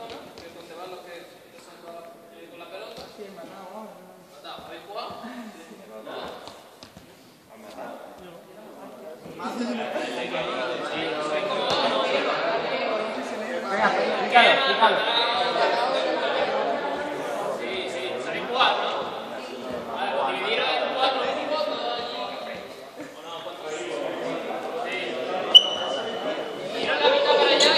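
A young man speaks to a group, his voice echoing in a large hall.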